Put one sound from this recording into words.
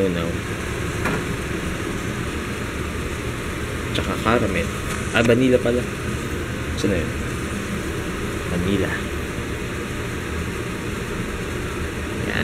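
Food sizzles gently in a frying pan.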